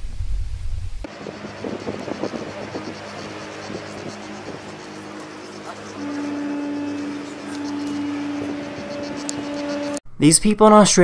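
Wind blows across a high cliff top.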